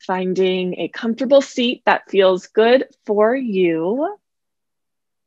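A young woman speaks calmly and warmly into a nearby microphone.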